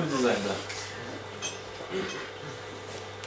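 A young man speaks briefly nearby.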